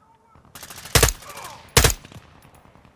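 A rifle fires loud sharp shots.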